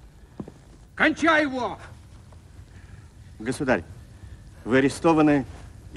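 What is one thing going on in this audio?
An elderly man speaks in short phrases.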